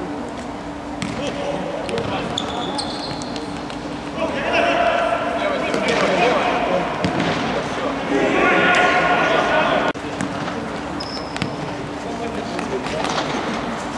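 A ball is kicked with sharp thumps.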